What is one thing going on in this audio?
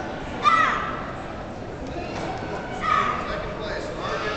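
A young girl shouts sharply.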